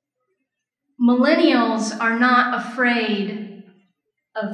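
A woman speaks calmly into a microphone, heard through a loudspeaker in a large room.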